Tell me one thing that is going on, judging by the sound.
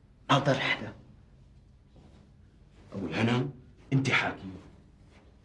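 A middle-aged man speaks urgently, close by.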